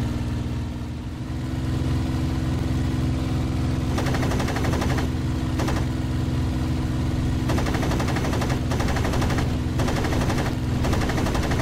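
A propeller aircraft engine drones steadily.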